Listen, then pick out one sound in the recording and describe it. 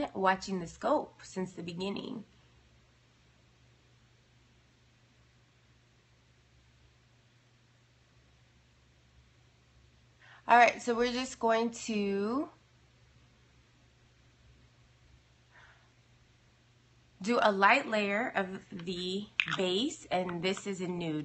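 A young woman talks casually and close up, in bursts with pauses.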